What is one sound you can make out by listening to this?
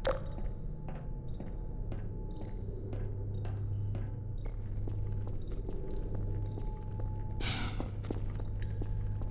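Footsteps clang steadily on a hard floor.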